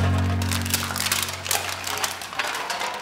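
Aluminium cans crunch underfoot as they are stamped flat.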